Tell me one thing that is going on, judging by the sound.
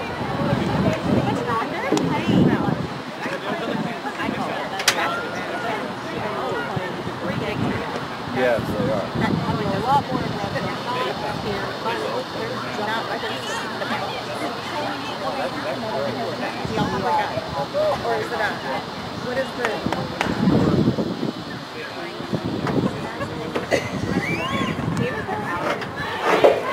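A crowd of people chatters and calls out across an open field.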